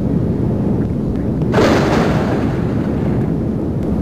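A rocket engine roars.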